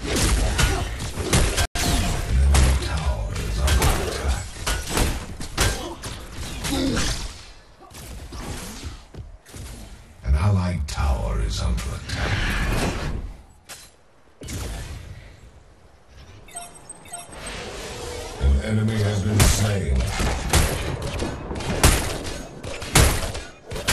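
Video game combat effects sound: blasts and impacts.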